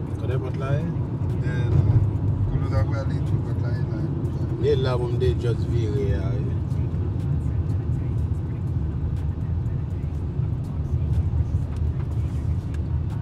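A car engine hums and tyres rumble steadily on the road from inside the car.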